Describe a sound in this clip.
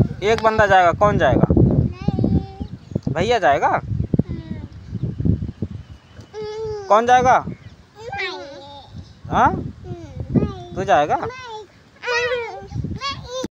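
A young child talks and babbles playfully close by.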